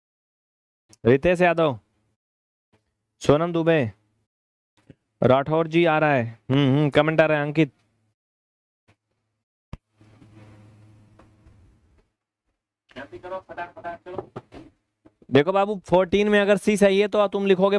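A man speaks with animation through a close microphone.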